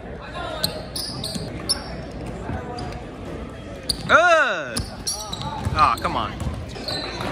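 A crowd of spectators chatters in an echoing gym.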